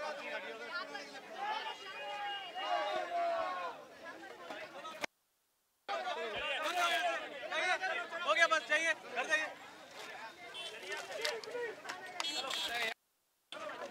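A crowd of men talk over one another loudly, close by, outdoors.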